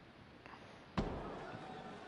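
A bowling ball thuds onto a lane.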